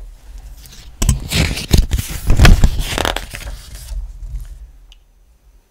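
Stiff paper pages rustle loudly as a page is turned.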